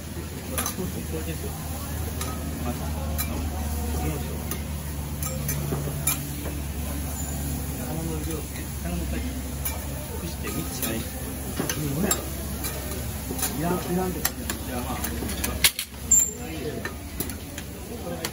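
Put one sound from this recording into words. Meat sizzles on a hot griddle.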